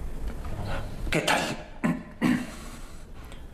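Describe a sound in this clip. A man speaks through a microphone in a large echoing hall.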